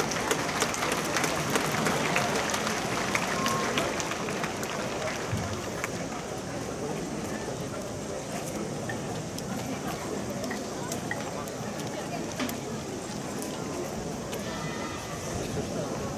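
A large outdoor crowd chatters in the distance.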